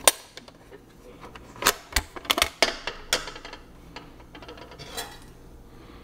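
Plastic parts click and clatter as a man handles them.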